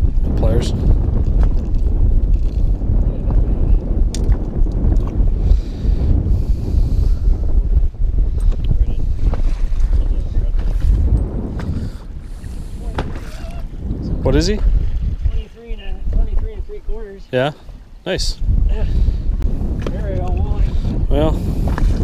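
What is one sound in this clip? Wind rumbles loudly across open water.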